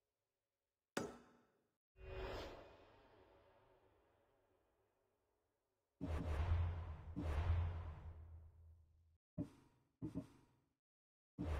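Game menu sounds whoosh and chime as pages switch.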